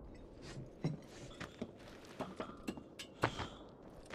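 Metal rungs of a ladder clank under climbing footsteps.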